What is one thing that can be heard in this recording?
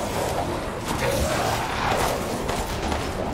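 A creature growls and snarls close by.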